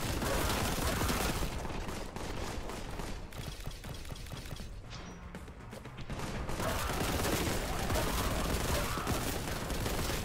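Rapid gunfire blasts loudly, one shot after another.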